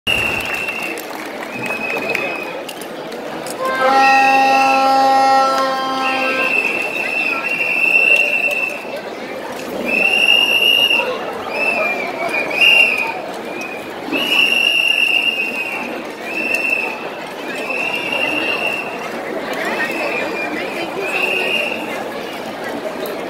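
Loud music plays over speakers in a large echoing hall.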